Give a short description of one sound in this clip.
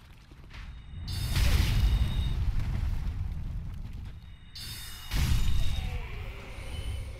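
A magic spell whooshes and booms with a deep rumble.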